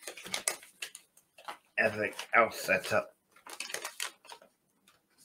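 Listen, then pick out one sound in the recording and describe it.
A man tears open a plastic packet with crinkling, rustling sounds.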